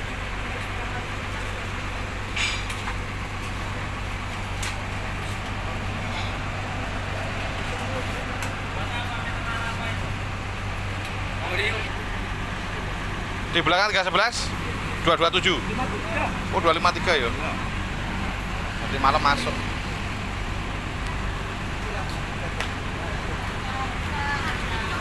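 A steady low hum of traffic and an engine idling fills the outdoors.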